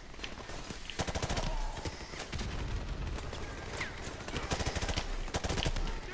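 Rapid bursts of automatic gunfire crack and echo indoors.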